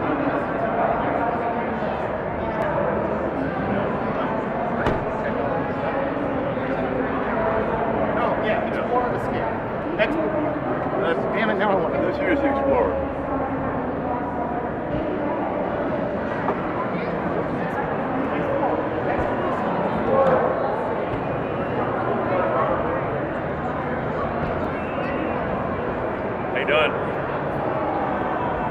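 A crowd chatters steadily all around in a large echoing hall.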